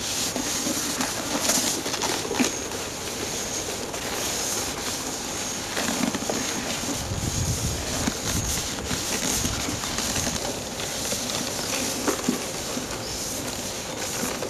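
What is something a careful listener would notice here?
A cloth rubs over a rubber boot.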